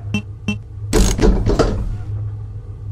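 A heavy metal safe door unlocks and swings open with a clank.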